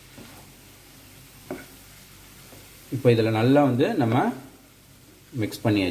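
A spatula scrapes and stirs food in a frying pan.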